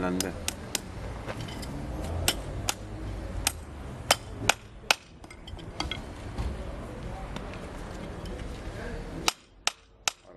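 A hammer strikes a metal horseshoe in quick, ringing blows.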